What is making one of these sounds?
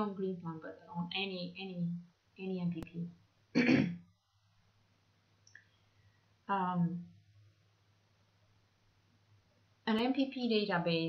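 A young woman speaks calmly into a close microphone, with pauses.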